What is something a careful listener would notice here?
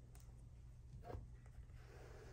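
A hardcover book's cover flips open with a soft thump.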